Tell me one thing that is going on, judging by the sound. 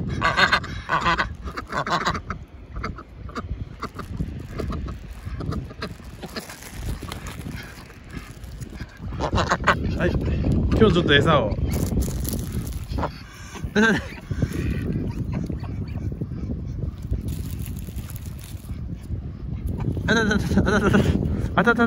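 Ducks quack loudly nearby.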